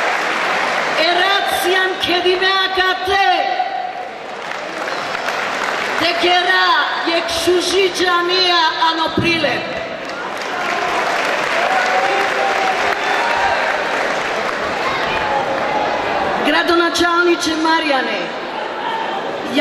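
An elderly woman sings loudly through a microphone and loudspeakers.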